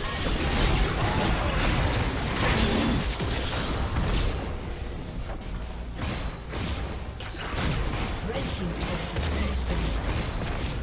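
Magic blasts, zaps and weapon hits clash in a busy fight.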